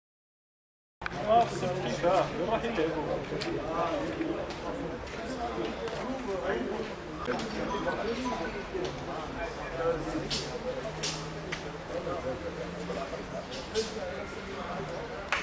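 Men talk with one another outdoors at a distance.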